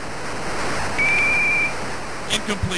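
A referee's whistle blows a short, sharp blast.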